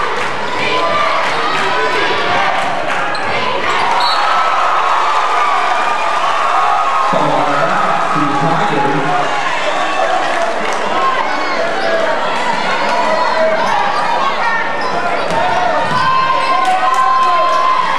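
A basketball bounces on a wooden floor.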